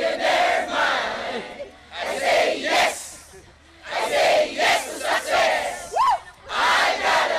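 A large crowd of men and women cheers and shouts loudly outdoors in bursts.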